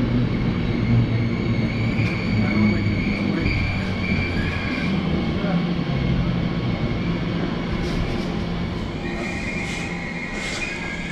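A train rumbles past a platform, its wheels clattering on the rails.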